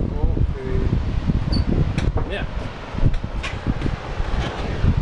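Wind gusts and buffets loudly outdoors.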